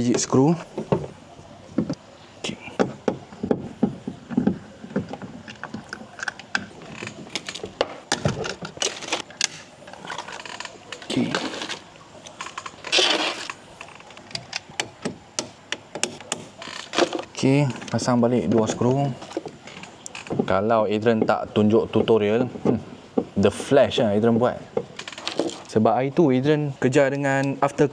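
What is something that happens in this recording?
Plastic trim clips click and snap as a car door panel is worked loose.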